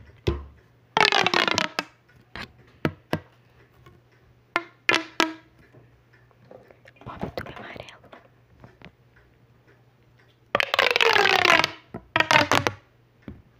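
A plastic pop tube is stretched and squeezed close to a microphone, with ringing, whistling creaks.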